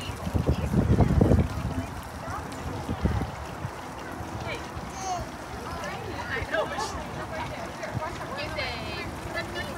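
People chatter in the background outdoors.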